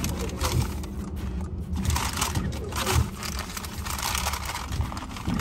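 A car engine idles with a low, steady rumble from inside the car.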